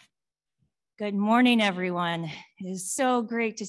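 A woman speaks warmly into a microphone.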